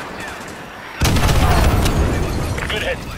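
A missile explodes with a deep, rumbling boom.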